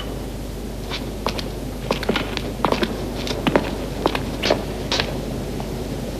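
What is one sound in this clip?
Footsteps shuffle on a stone floor.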